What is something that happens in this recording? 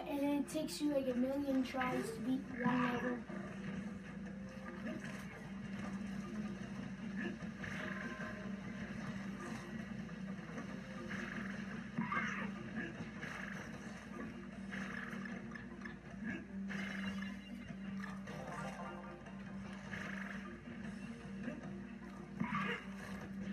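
Video game music and sound effects play through television speakers.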